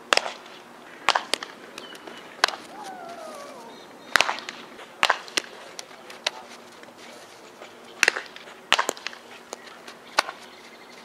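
A softball smacks into a leather glove with sharp pops.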